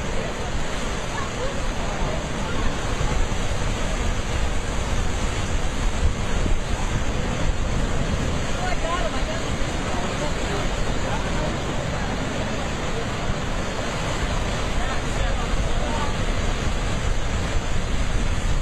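Heavy sea waves crash and churn against rocks.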